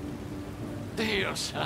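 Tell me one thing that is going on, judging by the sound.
A man shouts in alarm nearby.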